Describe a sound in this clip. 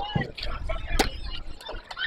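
A ball smacks into a catcher's mitt.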